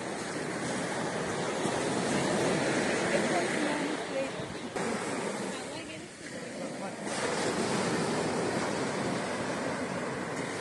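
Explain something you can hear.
Waves wash up onto a shore and hiss.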